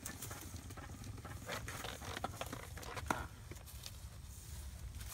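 A garden hose drags and rustles through grass.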